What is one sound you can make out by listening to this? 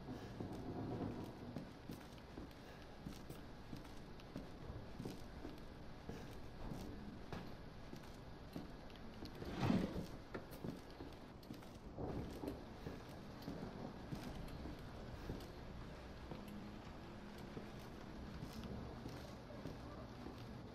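Footsteps thud slowly on creaking wooden floorboards.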